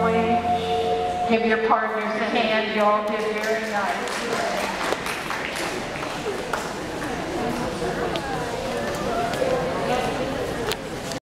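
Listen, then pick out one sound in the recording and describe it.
A woman calls out dance steps through a microphone and loudspeakers.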